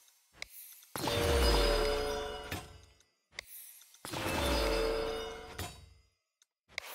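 Game menu chimes ring out in short bursts.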